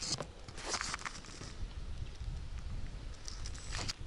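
Water laps gently against a rubber boat.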